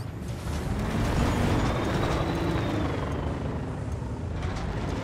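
Tyres roll and rattle over a hard road.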